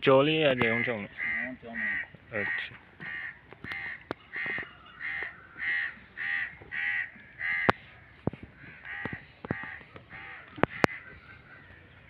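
A man speaks in a quick, rhythmic call close by.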